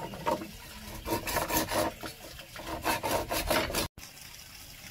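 A saw cuts through bamboo with quick rasping strokes.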